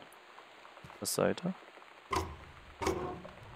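A wooden cabinet door creaks and bumps open.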